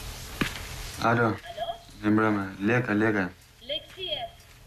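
A young man speaks quietly into a telephone.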